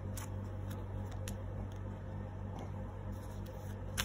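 A card is laid softly on a cloth surface.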